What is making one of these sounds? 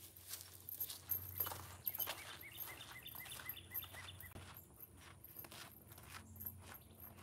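Footsteps crunch on gravel as a man walks away.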